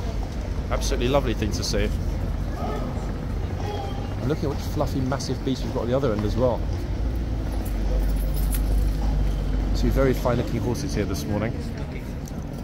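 A horse shifts its hooves on stone cobbles.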